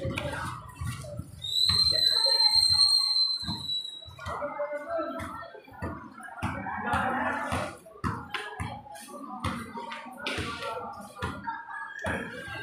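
A ball thumps on concrete.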